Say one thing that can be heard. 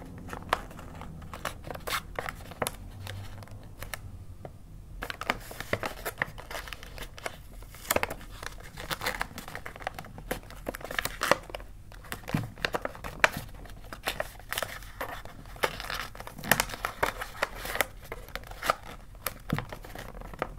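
Wrapping paper crinkles and rustles as hands fold it.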